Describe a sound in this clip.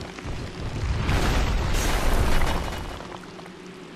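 Armour clatters loudly as a knight rolls across the floor.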